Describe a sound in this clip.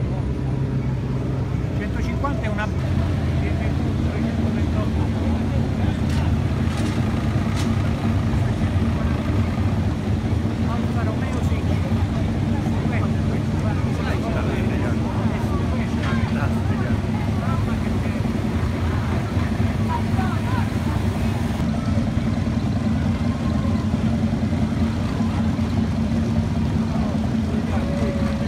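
Vintage car engines rumble and idle as cars roll slowly past.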